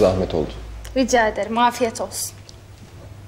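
A young woman speaks briefly and softly nearby.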